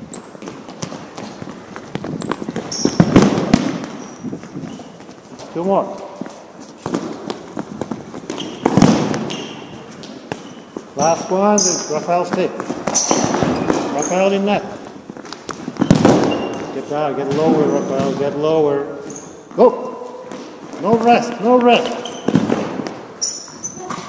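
A soccer ball thumps as it is kicked across a hard floor in an echoing hall.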